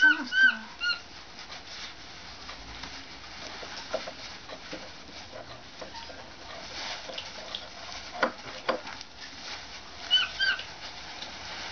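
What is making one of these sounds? A kitten mews in short high cries.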